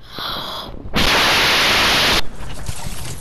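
Wind rushes loudly past during a fall through the air.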